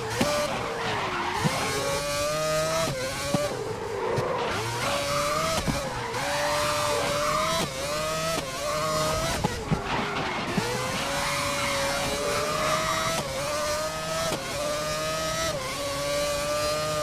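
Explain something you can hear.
A racing car engine screams at high revs, rising through the gears and dropping sharply as it brakes and shifts.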